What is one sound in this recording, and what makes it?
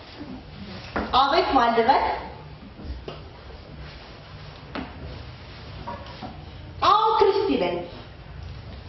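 A young woman sings out loudly into a microphone in short bursts.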